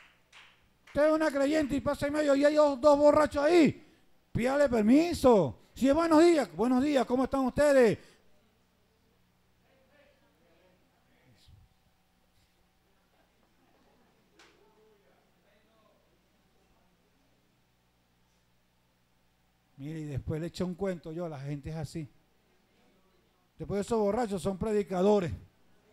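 A man speaks loudly and with animation through a microphone and loudspeakers, with long pauses.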